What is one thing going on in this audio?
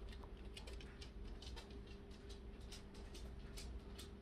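A cat chews and licks a treat close by with soft wet clicks.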